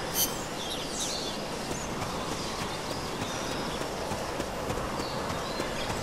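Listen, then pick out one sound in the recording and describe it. Footsteps crunch on leafy ground.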